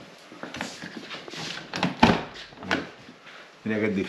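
A car door clicks and thumps as it opens.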